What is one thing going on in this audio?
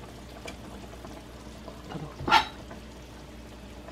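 A metal pot lid clinks as it is lifted.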